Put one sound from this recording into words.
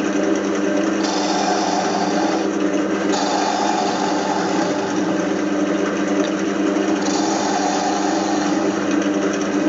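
A chisel scrapes against spinning wood in short bursts.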